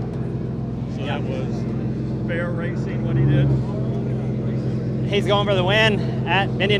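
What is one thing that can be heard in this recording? A man speaks calmly, close to several microphones.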